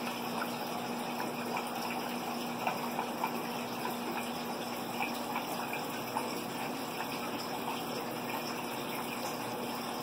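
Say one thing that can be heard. Air bubbles burble through the water of an aquarium.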